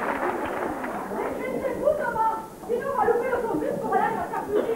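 A man speaks with animation into a microphone in a large hall.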